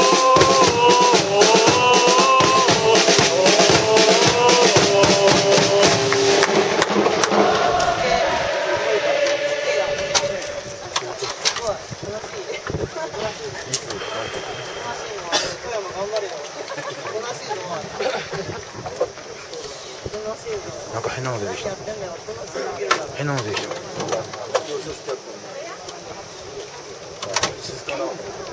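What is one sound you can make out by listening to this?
A crowd of spectators chatters and murmurs nearby.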